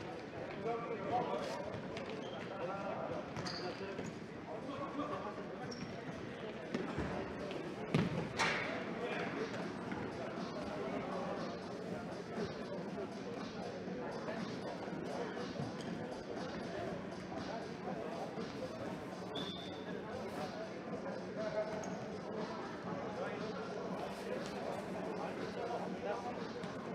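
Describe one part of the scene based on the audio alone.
Young men shout to each other across an echoing sports hall.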